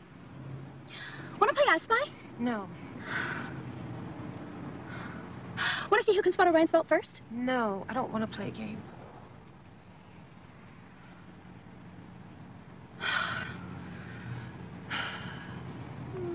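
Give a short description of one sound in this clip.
A young woman talks nearby with attitude.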